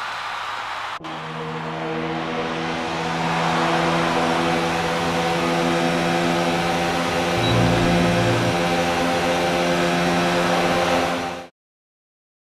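A racing car engine idles with a steady, loud hum.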